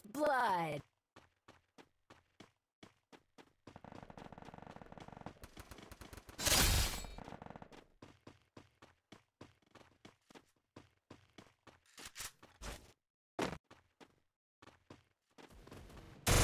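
Quick footsteps patter on a hard floor.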